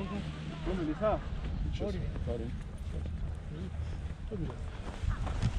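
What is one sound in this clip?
A young man talks close by, calmly.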